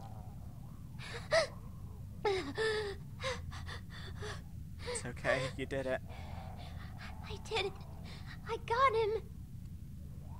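A young girl speaks softly and shakily.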